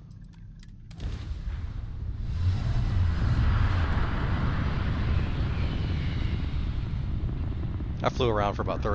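A spaceship engine roars steadily, then fades.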